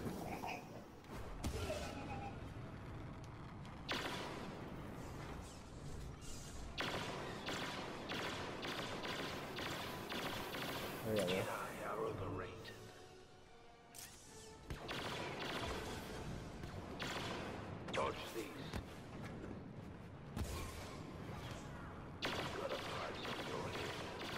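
Laser blasters fire in rapid bursts during a noisy battle.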